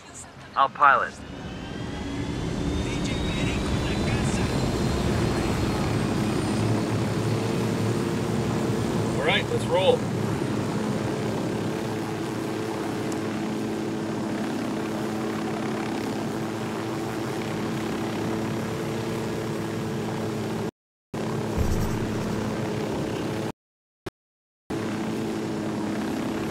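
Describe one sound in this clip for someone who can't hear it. A helicopter engine whines and its rotor thumps steadily, growing louder as it lifts off.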